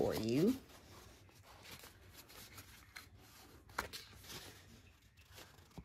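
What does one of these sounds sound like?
Paper rustles and crinkles softly as it is folded by hand.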